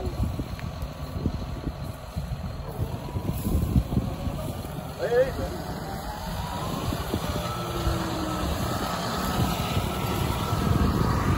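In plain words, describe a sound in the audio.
A tractor engine rumbles nearby.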